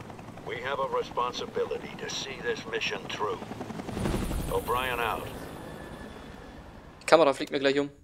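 A helicopter's rotor whirs overhead.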